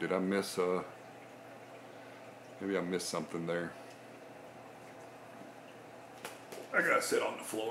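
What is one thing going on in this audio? Water bubbles and trickles softly in a fish tank.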